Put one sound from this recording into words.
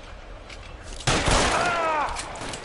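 A pistol fires a loud shot that echoes through a large hall.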